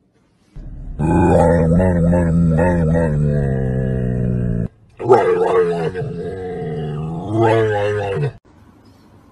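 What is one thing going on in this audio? A dog howls and whines in long, wavering cries.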